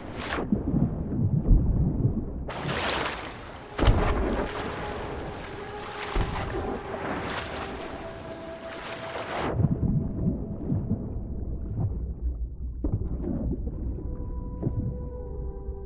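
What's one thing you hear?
Water sloshes and gurgles as a swimmer moves underwater and breaks the surface.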